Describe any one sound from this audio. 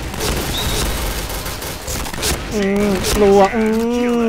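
A shotgun fires loud, sharp blasts.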